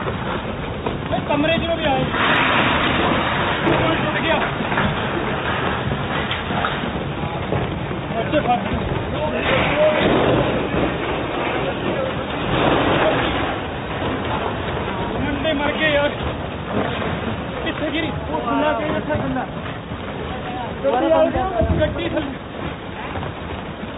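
Rocks and boulders crash and rumble down a slope.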